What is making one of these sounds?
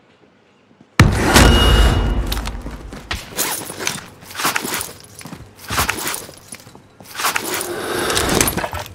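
Footsteps thud quickly on stone steps.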